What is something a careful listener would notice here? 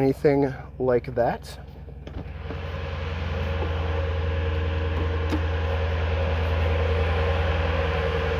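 A car engine idles with a steady low rumble that grows a little louder.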